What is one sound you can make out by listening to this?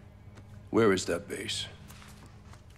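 A man speaks forcefully up close.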